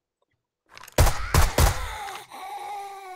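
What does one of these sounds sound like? A rifle fires several loud shots.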